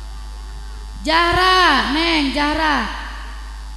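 A woman speaks loudly through a loudspeaker.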